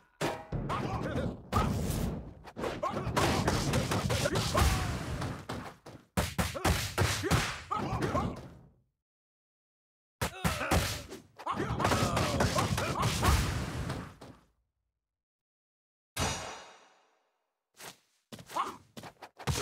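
Punches and kicks land with sharp smacking hits in a video game.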